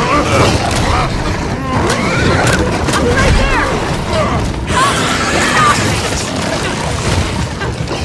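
Flesh tears with a wet splatter.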